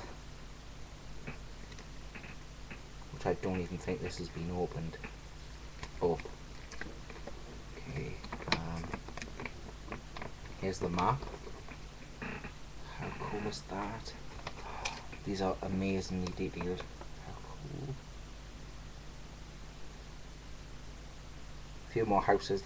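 Plastic game cases and paper rustle in hands.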